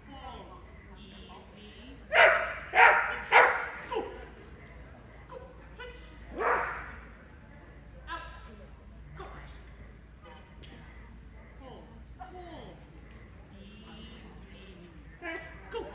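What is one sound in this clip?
A woman calls out commands to a dog, her voice echoing in a large hall.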